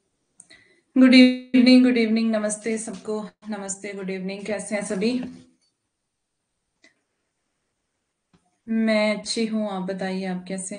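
A woman speaks calmly into a microphone, as if on an online call.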